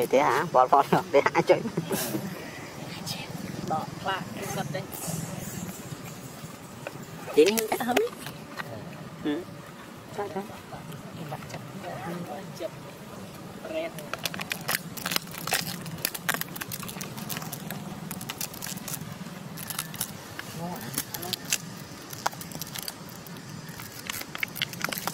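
A young monkey chews noisily on food.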